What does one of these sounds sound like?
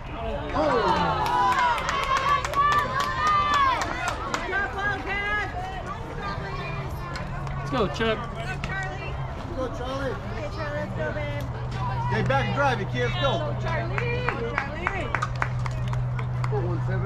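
Young women shout and cheer across an open field.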